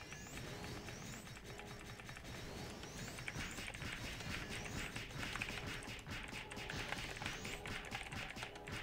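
Rapid video game spell effects and hits crackle and clash.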